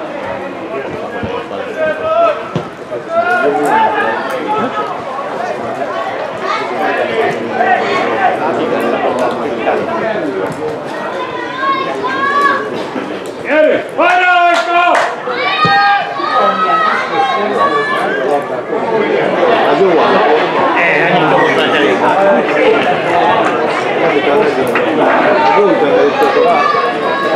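Men shout and call out across an open outdoor field.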